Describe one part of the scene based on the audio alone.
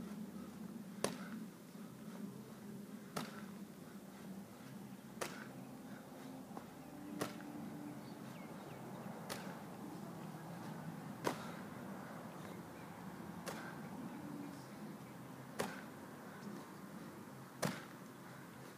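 A heavy ball thuds against a wooden frame over and over, every two seconds or so.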